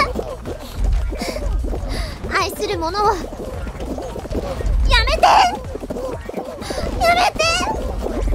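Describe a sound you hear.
A young woman talks and shrieks with excitement close to a microphone.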